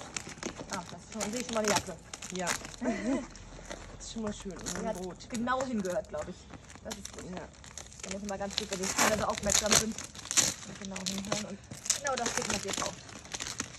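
A woman talks calmly nearby, outdoors.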